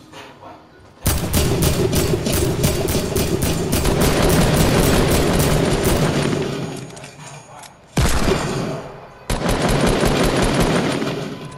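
Rapid bursts of gunfire ring out loudly.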